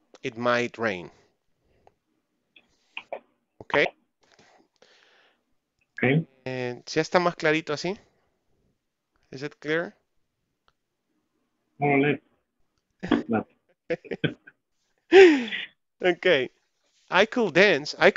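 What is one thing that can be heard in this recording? A man speaks calmly and explains, heard over an online call.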